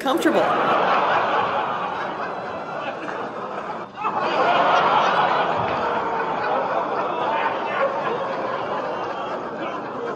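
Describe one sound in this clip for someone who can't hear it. A man talks cheerfully nearby.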